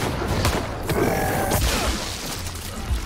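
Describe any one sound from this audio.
A monster roars loudly and wetly.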